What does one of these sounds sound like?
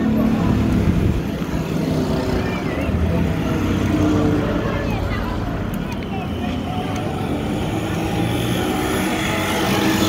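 A motor tricycle drives past with a puttering engine.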